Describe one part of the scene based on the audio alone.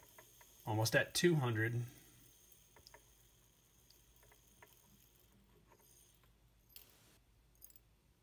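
Fine powder grains trickle softly into a small metal pan.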